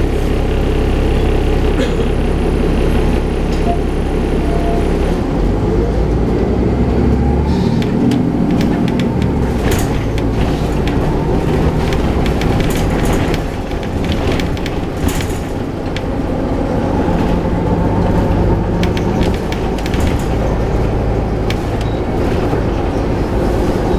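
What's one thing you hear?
A diesel city bus idles.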